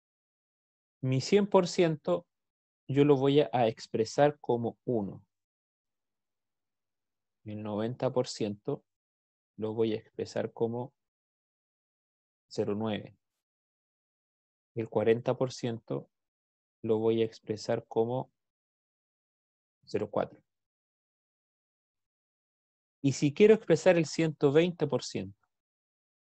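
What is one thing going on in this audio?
A man explains calmly in short phrases over an online call.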